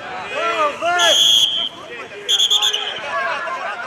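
A referee's whistle blows two short sharp blasts.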